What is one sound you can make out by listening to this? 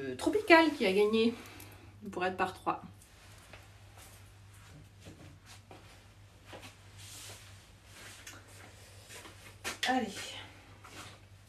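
A woman talks with animation, close by.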